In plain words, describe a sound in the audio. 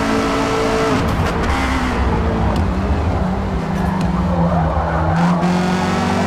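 A racing car engine drops in pitch as the car brakes hard.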